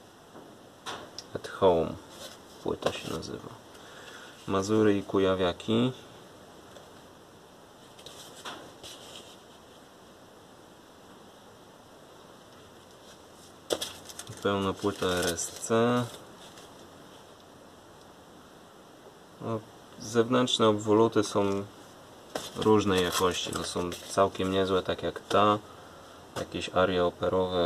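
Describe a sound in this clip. Cardboard record sleeves slide and rustle as they are flipped over.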